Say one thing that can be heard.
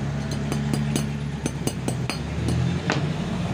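A hammer taps rapidly on a metal punch.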